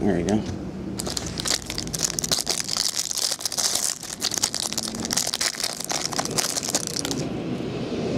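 Hands crinkle and tear open a plastic wrapper.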